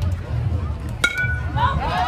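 A bat hits a ball with a sharp crack.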